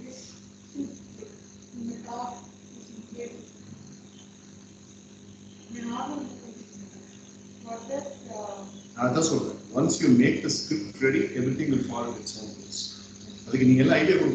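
A teenage boy talks with animation through an online call.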